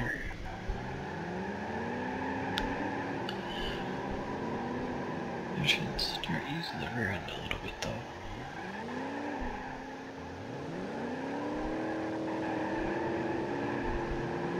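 A car engine revs up through its gears.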